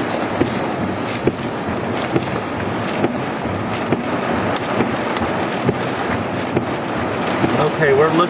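Rain patters and taps against a window.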